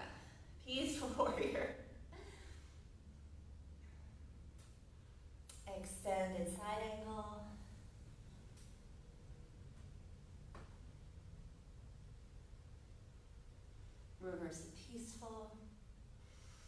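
A woman speaks calmly, giving short instructions in pauses.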